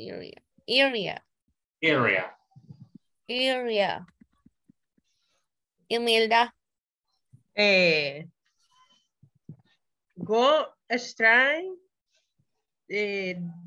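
A woman speaks in short phrases over an online call.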